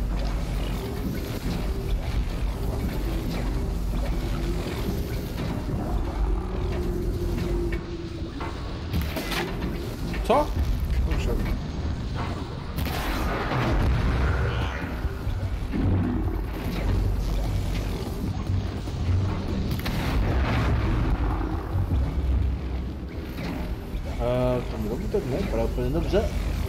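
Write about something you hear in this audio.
Electric crackling and blasts sound from a video game battle.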